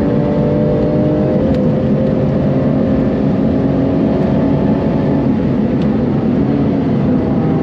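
Tyres roar on the track surface.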